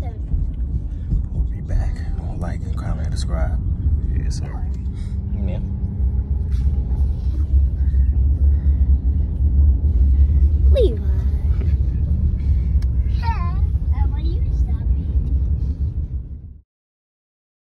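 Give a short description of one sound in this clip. A car engine rumbles low and steady.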